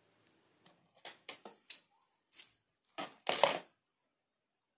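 A metal spoon clinks against a glass.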